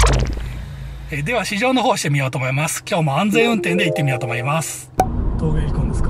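A man talks with animation inside a car.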